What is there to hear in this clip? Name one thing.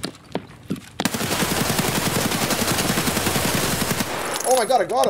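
A rapid burst of gunfire rattles loudly.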